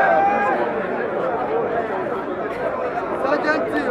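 Men talk close by in loud voices.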